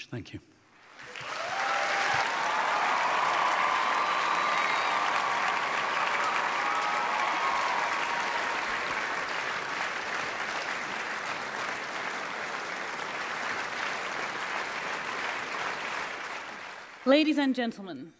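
An audience applauds loudly and cheers.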